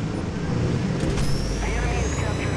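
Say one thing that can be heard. A laser beam fires with a sharp, buzzing whine.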